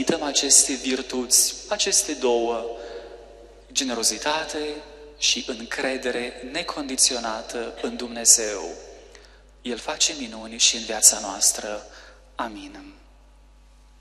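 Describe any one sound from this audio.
A man speaks with animation into a microphone in an echoing room.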